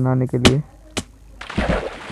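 Water splashes softly as someone wades through it.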